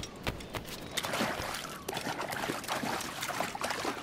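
Water splashes as someone wades through shallows.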